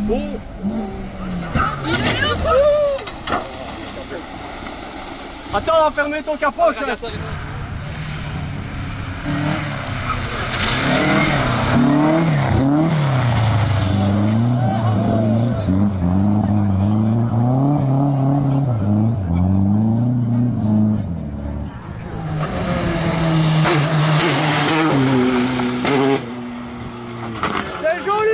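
Gravel and dirt crunch and spray under spinning tyres.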